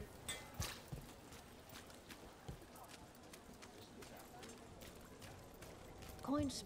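Hooves clop steadily on stone paving.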